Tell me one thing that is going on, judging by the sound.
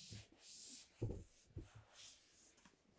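A seat cushion thumps and creaks as it is lifted.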